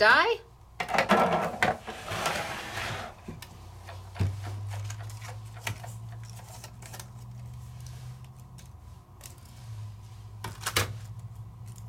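Plastic plates clack and rustle as they are pulled apart.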